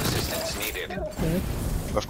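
An explosion bursts with a crackle.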